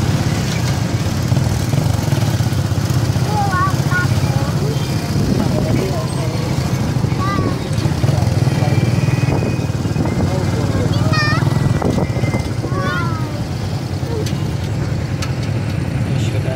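A vehicle engine rumbles steadily during the ride.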